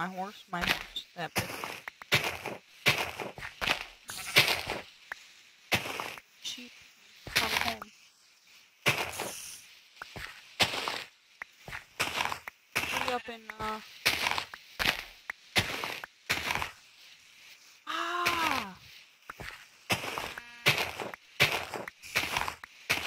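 A shovel digs into dirt with repeated crunching thuds.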